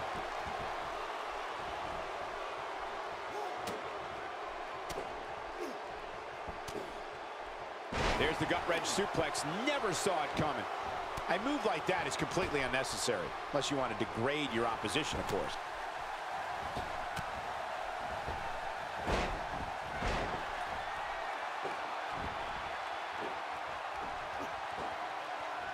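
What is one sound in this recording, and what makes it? An arena crowd roars and cheers.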